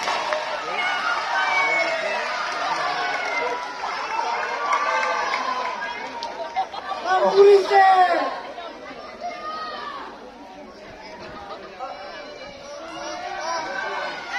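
A choir of young voices sings together outdoors.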